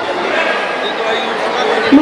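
A woman speaks through a loudspeaker in a large echoing hall.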